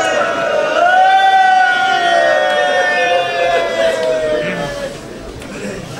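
A man chants loudly through a microphone in a mournful, drawn-out voice.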